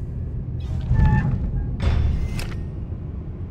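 A heavy metal door swings shut with a clank.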